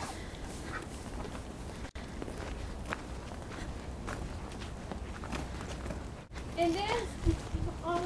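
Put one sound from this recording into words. Footsteps crunch on wood chips.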